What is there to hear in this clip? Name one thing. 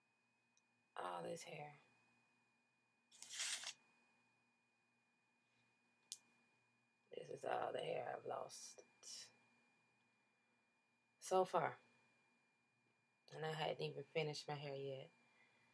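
A young woman speaks softly and close by in short bursts.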